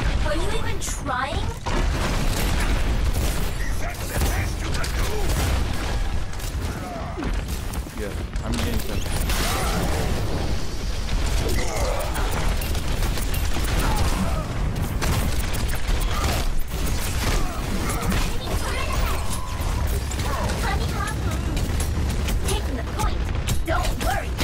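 Rapid gunfire rattles continuously.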